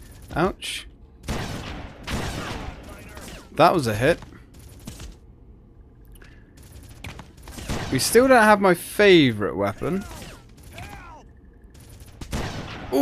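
Rifle shots crack from a game.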